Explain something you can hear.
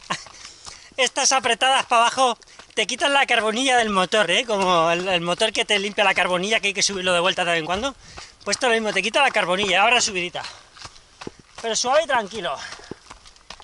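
A man talks with animation close by, a little out of breath.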